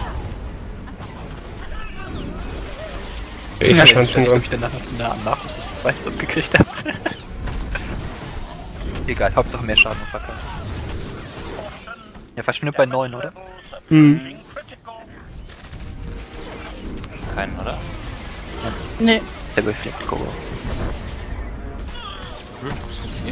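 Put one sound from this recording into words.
Blaster shots and energy blasts crackle in a fast fight.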